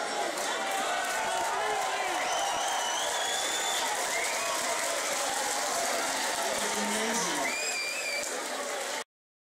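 Shrill whistles ring out from a crowd.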